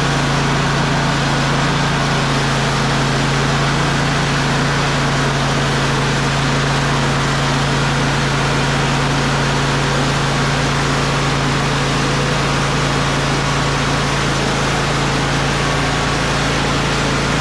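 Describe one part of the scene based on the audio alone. A band saw blade whines as it cuts through a log.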